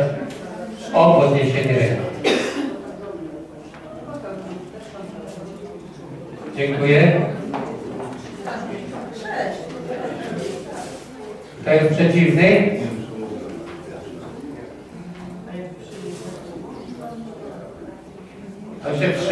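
People murmur and talk quietly in the background.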